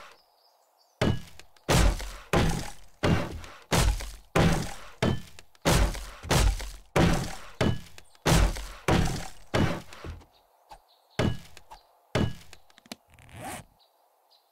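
A hammer strikes wood in quick, repeated knocks.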